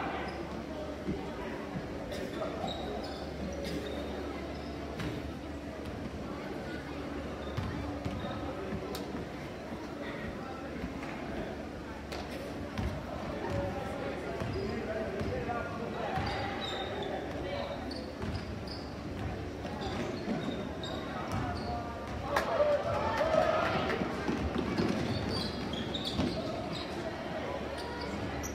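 A basketball bounces on a wooden floor in an echoing gym.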